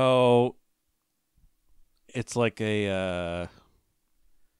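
A man speaks in long, drawn-out bursts close to a microphone.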